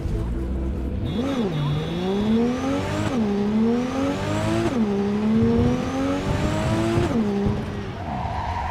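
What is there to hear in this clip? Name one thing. A car engine revs up hard and drops back again and again as it shifts through gears.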